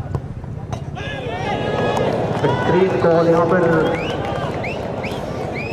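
A crowd cheers loudly after a goal.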